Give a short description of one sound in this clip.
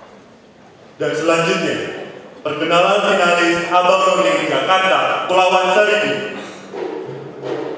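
A young man reads aloud through a microphone.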